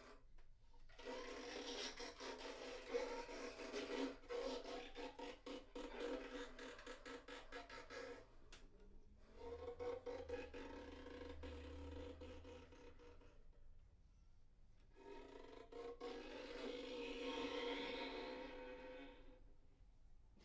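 Two violins play a slow, quiet duet.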